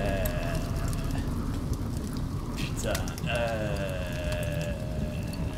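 Torch flames crackle softly.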